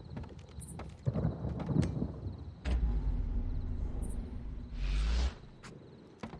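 Cloth and bedding rustle as they are rummaged through.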